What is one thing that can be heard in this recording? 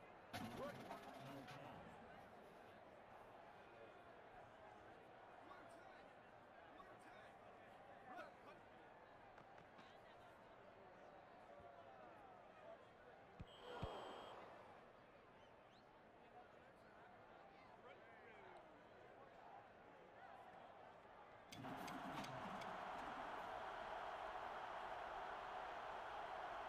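A stadium crowd cheers steadily in the background.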